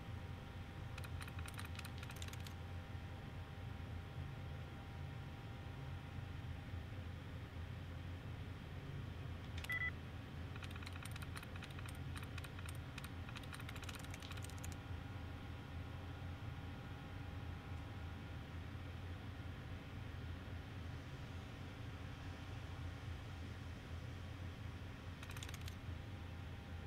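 A computer terminal ticks in rapid bursts.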